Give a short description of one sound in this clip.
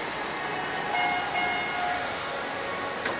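An elevator chime rings out.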